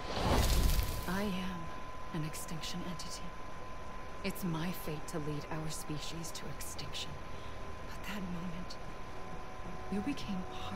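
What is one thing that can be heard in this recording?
A woman speaks slowly and calmly, close by.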